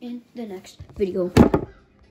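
A hand bumps against something close by with a loud thump.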